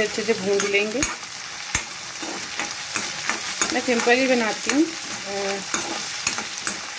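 A spatula scrapes and clatters against a metal pan.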